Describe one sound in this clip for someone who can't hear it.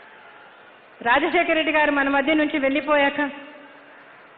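An older woman speaks with feeling into a microphone over loudspeakers.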